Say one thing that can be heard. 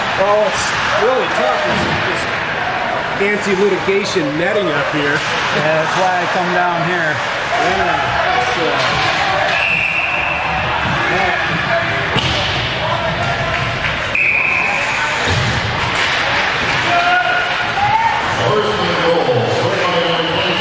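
A crowd of spectators shouts and cheers in a large echoing rink.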